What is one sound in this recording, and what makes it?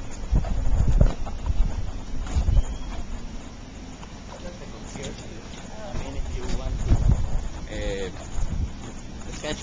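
Wind gusts outdoors, buffeting the microphone.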